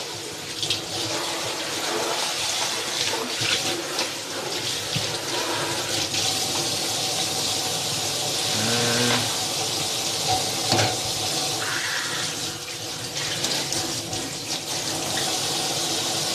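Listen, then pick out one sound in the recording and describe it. Dishes clatter and knock in a sink.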